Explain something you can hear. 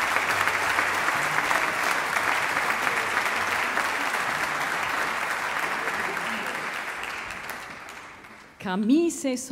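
An audience applauds loudly in a large hall, then the applause fades.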